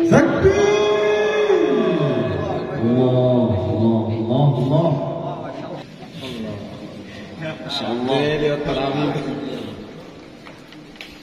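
A young woman chants melodically into a microphone, heard through a loudspeaker with echo.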